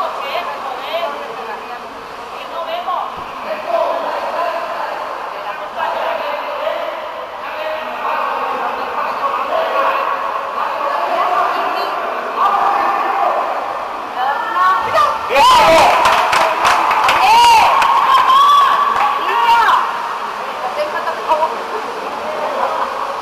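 Water splashes as swimmers thrash and wrestle in a pool.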